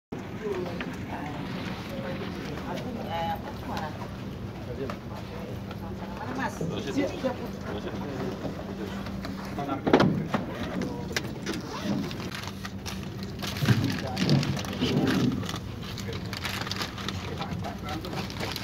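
Several men talk at once nearby.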